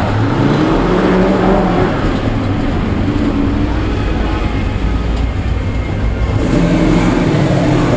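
A V8 engine revs and eases off, heard from inside the car's cabin.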